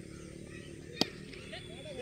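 A cricket bat strikes a ball with a single sharp crack in the distance.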